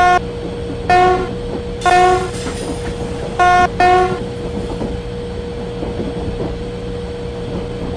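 A locomotive engine rumbles steadily as the train rolls along the tracks.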